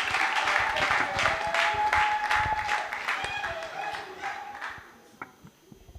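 A large crowd claps in rhythm in an echoing hall.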